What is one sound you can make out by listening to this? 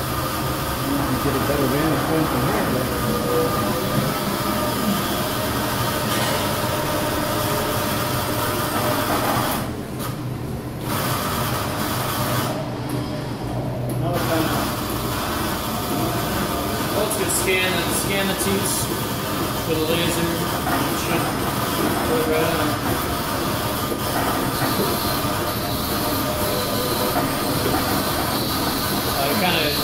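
A milking machine hums and whirs steadily.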